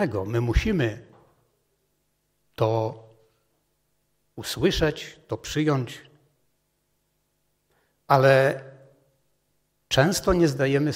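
A middle-aged man speaks calmly into a microphone with pauses, in a room with slight echo.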